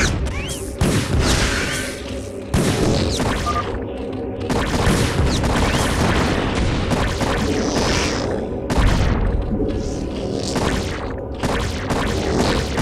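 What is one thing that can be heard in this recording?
Creatures screech and clash in a video game battle.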